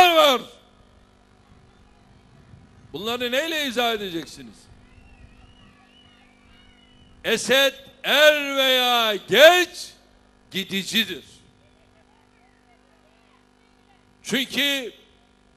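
A man speaks forcefully through a microphone and loudspeakers outdoors, in short bursts with pauses.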